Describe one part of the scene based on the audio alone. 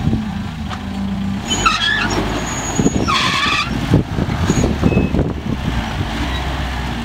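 Tyres crunch and scrape over rock and loose gravel.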